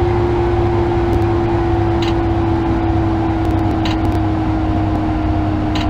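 Train wheels rumble low on the rails.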